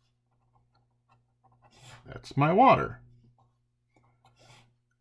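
A pencil scratches on paper.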